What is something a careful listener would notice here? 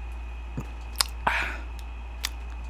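A young man bites into crispy food close to a microphone.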